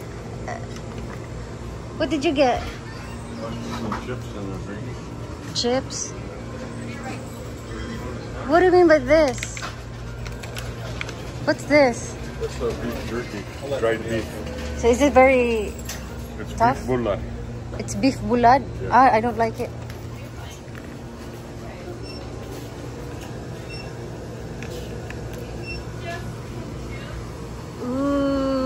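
Drink coolers hum steadily.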